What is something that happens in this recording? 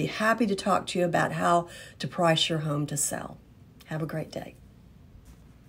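An older woman speaks calmly and close to a microphone.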